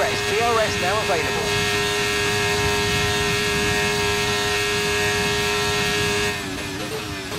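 A racing car engine screams loudly at high speed.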